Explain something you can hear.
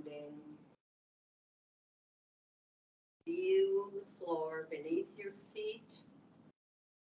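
An older woman speaks calmly, heard through a microphone on an online call.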